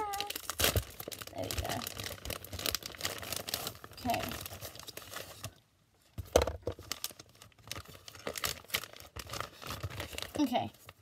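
A plastic wrapper crinkles and rustles in a girl's hands.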